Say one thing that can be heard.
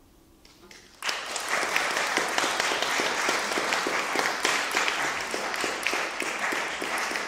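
A hammered zither is struck in quick, even beats.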